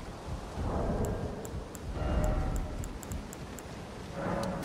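Menu clicks tick in quick succession.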